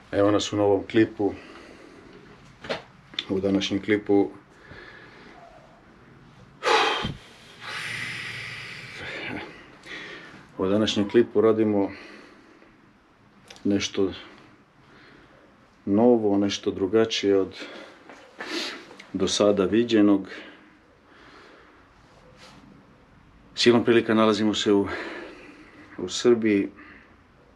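A man speaks calmly and close to the microphone, in bursts with pauses.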